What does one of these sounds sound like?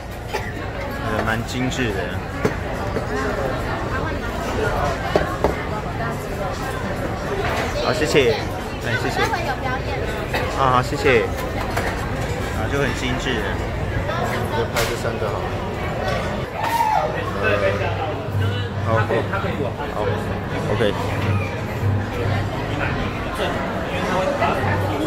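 Many people talk at once in a busy, echoing room.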